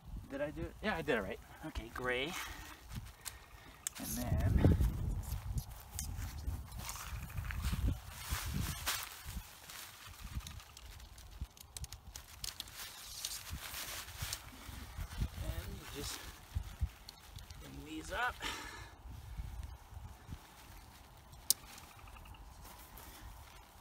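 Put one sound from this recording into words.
Tent fabric rustles and crinkles.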